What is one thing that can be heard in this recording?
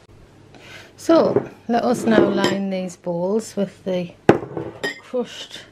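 Glass bowls clink against each other on a table.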